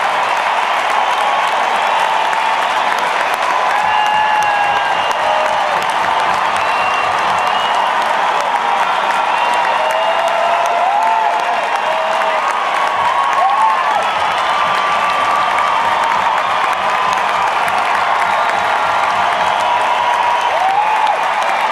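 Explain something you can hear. A large crowd cheers and claps loudly in a big echoing arena.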